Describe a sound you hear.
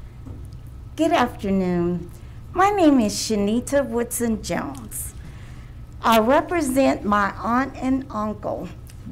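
A woman speaks with animation into a microphone.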